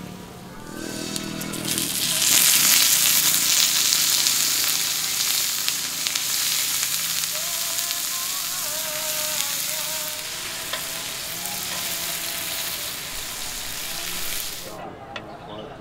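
Water hisses and sizzles loudly on a hot pan, then stops suddenly.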